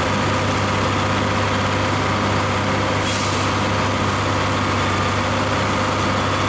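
A tractor engine runs loudly at a steady idle.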